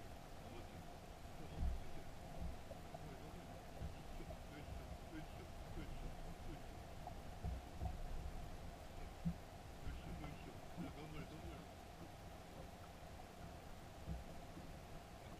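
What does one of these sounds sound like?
A boat's motor hums steadily.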